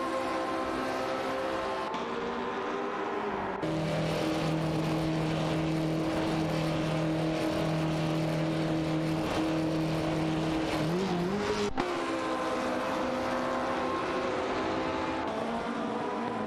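Racing car engines drone steadily at high revs.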